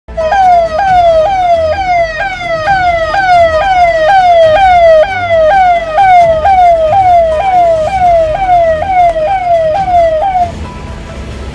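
A police siren wails close by in rapid repeating falling sweeps.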